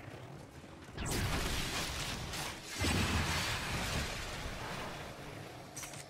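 Gunfire and blasts roar in quick bursts.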